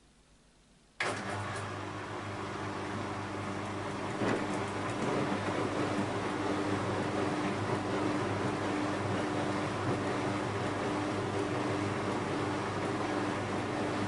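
A washing machine drum turns and churns.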